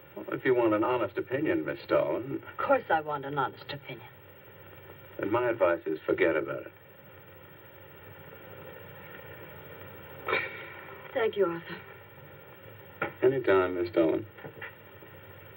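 A man speaks calmly and firmly nearby.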